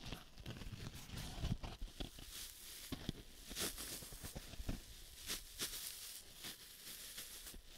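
Fingertips tap lightly on a foam sponge.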